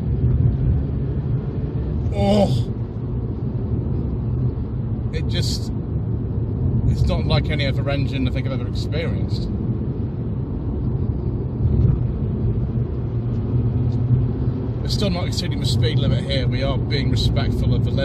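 A car engine rumbles steadily as the car drives along a narrow road.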